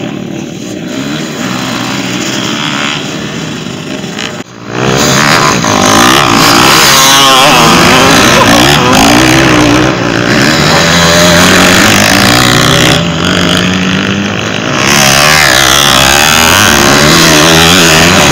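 Dirt bike engines rev loudly and whine up and down in pitch.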